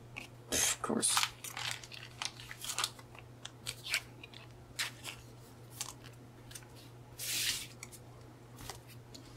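Trading cards rustle and slide against each other as a hand shuffles them.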